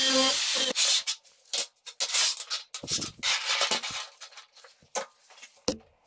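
Metal pieces clink as they are set down on a steel table.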